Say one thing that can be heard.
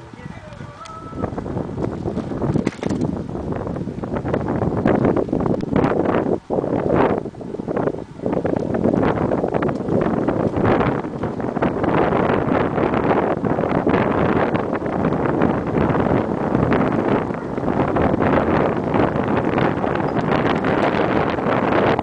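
Wind rushes past on a moving bicycle.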